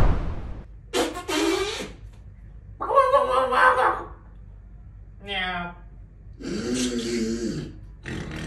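A group of adults talks and laughs, close by.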